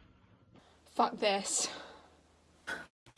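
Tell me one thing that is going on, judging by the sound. A young woman speaks in a strained, pained voice close by.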